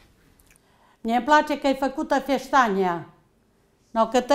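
An elderly woman speaks with animation close by.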